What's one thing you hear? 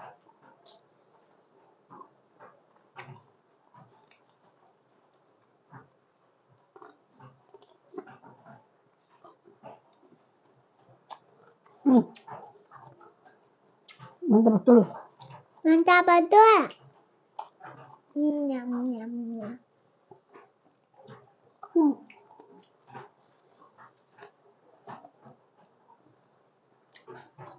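A woman chews food with soft smacking sounds.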